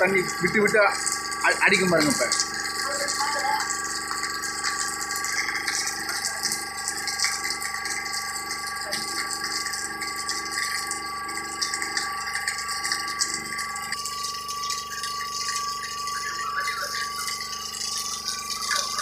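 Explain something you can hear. Water gushes from a hose and splashes onto a hard floor.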